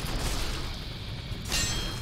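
A sword strikes a creature with a heavy thud.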